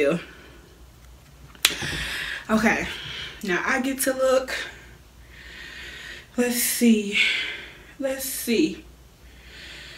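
A woman talks animatedly close to a microphone.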